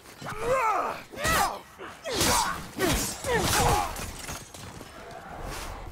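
A sword swings and slashes into a body.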